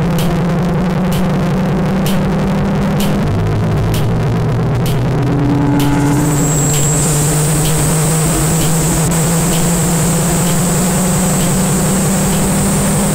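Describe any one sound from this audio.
A ruler slaps sharply at a steady, regular beat.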